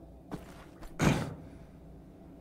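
A body lands with a heavy thud on a wooden floor.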